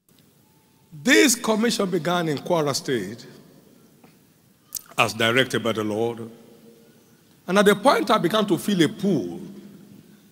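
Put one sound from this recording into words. An elderly man preaches with animation into a microphone in a large echoing hall.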